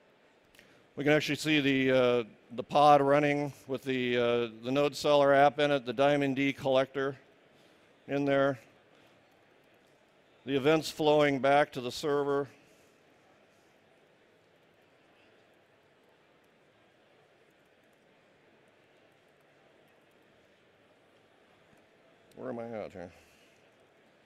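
A man speaks through a microphone, pausing between phrases.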